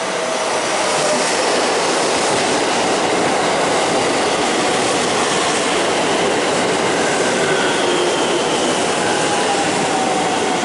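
Train wheels squeal against the rails as the train slows.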